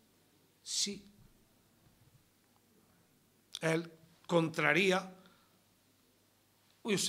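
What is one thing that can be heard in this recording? A middle-aged man speaks with animation into microphones, in short bursts with pauses.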